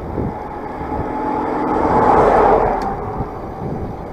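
A large truck rushes past close by.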